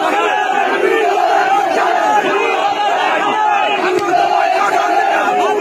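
A man shouts slogans close by.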